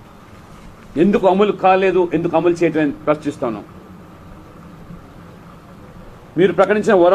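An elderly man speaks into microphones, reading out calmly.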